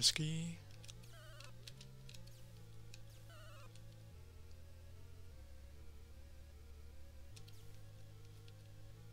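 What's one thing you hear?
Short electronic blips and bleeps sound from a video game.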